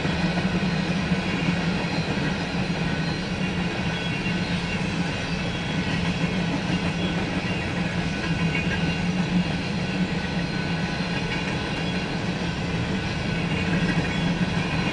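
Empty covered hopper cars of a freight train rumble past, wheels clacking over the rails.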